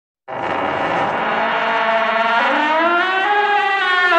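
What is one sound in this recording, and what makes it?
A door creaks slowly open.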